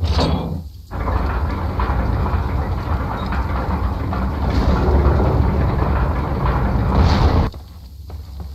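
Large wooden gears grind and rumble as they turn.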